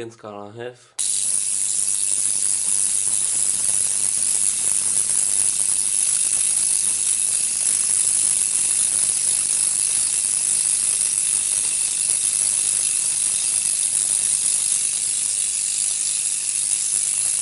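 Bright electric sparks roar and crackle across a multi-gap spark gap fed by a capacitor.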